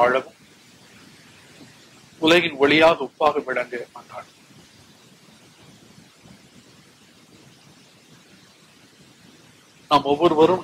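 An elderly man chants slowly through a microphone, with pauses.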